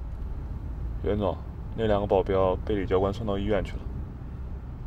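A man speaks calmly in a car.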